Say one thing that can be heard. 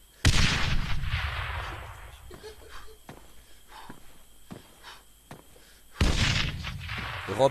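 A rifle fires loud shots that echo across open ground.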